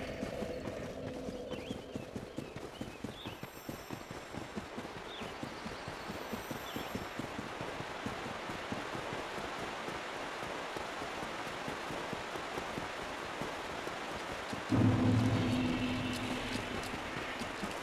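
Heavy armoured footsteps run quickly over the ground.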